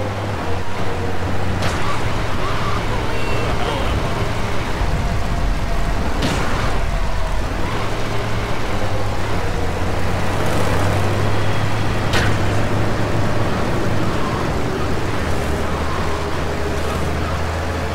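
A fire truck engine drones as the truck drives.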